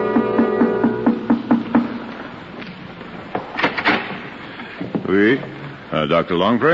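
A man reads out lines over an old, muffled radio broadcast.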